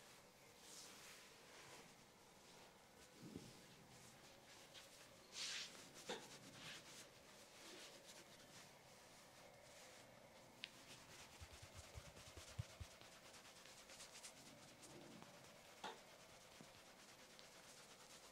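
A sponge rubs and pats softly against skin and hair, close by.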